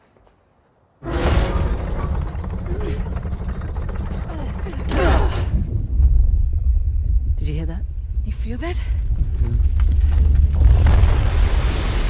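A heavy stone mechanism grinds and rumbles as it turns.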